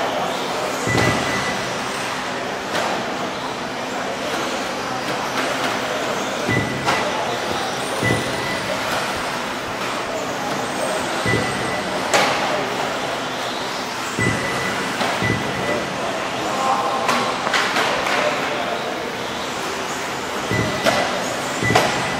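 Radio-controlled cars thump as they land from jumps.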